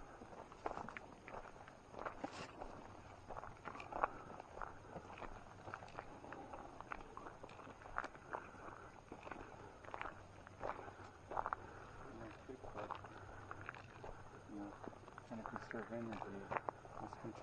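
Footsteps rustle and crunch through dry leaves and undergrowth.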